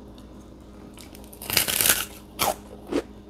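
A young woman bites into crispy food with a loud crunch.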